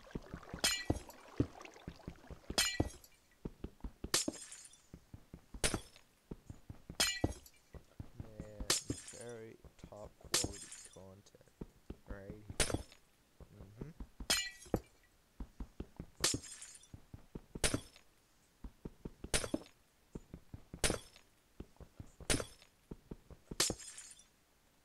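A pickaxe strikes and breaks blocks of ice with sharp cracks at a steady pace.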